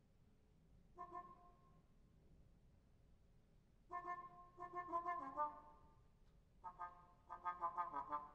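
A muted trombone plays short, bright notes in bursts.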